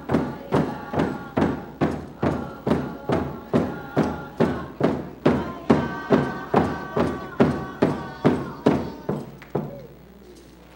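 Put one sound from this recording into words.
Dancers' feet stamp in a steady rhythm on a wooden stage.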